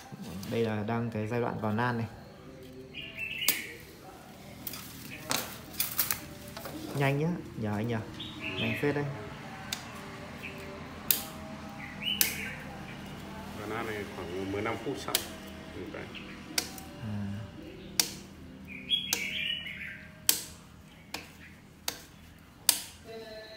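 Metal rods clink and tap sharply.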